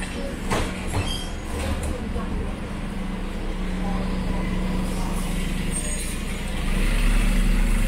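A bus engine hums nearby.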